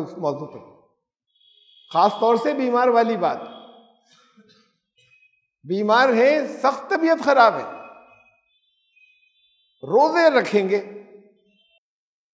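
An elderly man speaks slowly and expressively into a microphone, with pauses between phrases.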